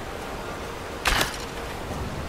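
An arrow is loosed from a bow with a sharp snap.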